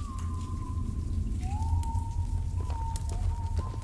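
A torch flame flickers and crackles softly.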